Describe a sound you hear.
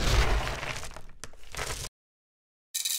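Coffee beans pour and rattle onto wood.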